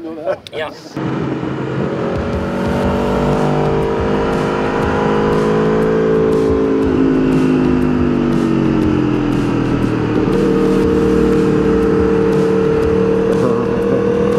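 A motorcycle engine roars at high speed, rising and falling in pitch.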